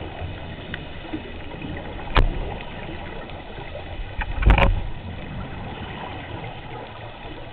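Water rumbles softly and steadily, heard from underwater.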